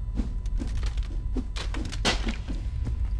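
A pickaxe knocks against rock.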